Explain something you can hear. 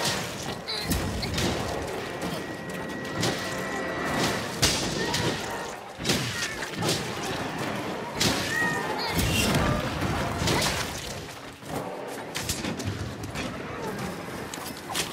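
A bladed weapon strikes a creature with heavy impacts.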